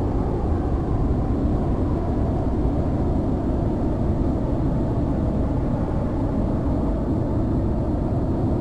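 A jet engine roars with a steady, deep rumble.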